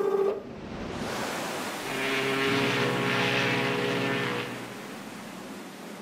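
A steamboat engine chugs and hisses nearby.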